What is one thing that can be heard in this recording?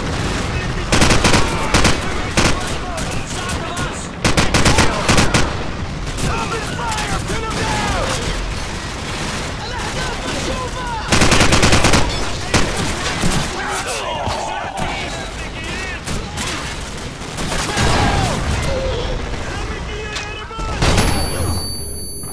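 Rifle fire rattles out in loud, rapid bursts.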